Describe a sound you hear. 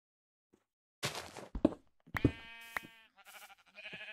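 A pickaxe chips and breaks stone blocks.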